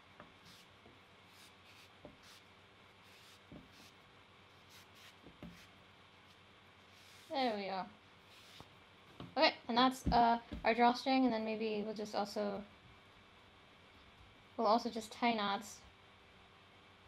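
Fabric cord rustles softly as it is handled.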